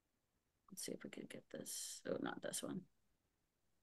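A young woman speaks quietly over an online call.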